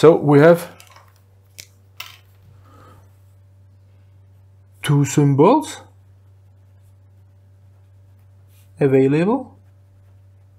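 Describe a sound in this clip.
A man speaks calmly into a close microphone, in short bursts.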